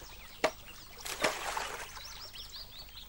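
Something splashes into the water.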